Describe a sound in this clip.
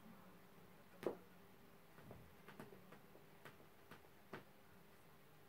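A cat bats at a toy and scuffles on a carpet.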